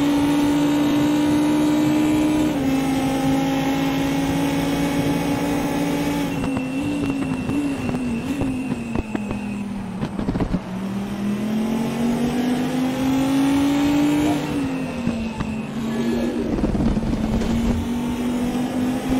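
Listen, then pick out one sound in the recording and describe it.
A racing car engine roars at high revs, dropping in pitch with each gear change and when braking, then rising again.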